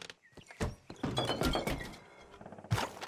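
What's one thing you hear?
Footsteps thud on a wooden porch.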